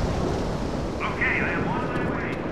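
A zombie snarls and growls close by.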